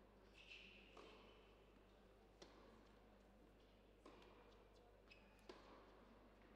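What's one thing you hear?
A tennis ball bounces on a hard court several times.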